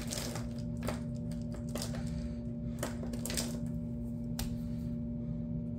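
Marker pens clatter as they are picked up from a pile.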